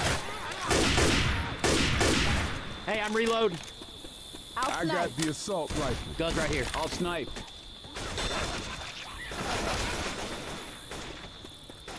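Zombies snarl and groan.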